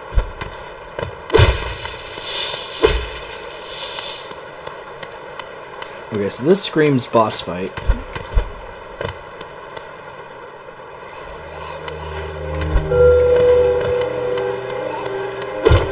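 Light footsteps tap quickly.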